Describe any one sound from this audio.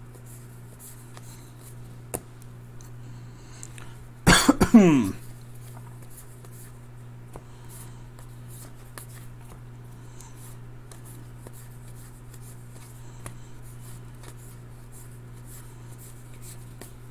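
Trading cards shuffle and flick softly as hands sort through them.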